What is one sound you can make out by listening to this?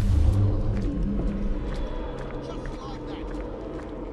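Footsteps patter on wet cobblestones.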